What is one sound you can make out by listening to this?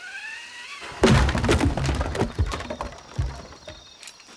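A heavy wooden gate crashes open.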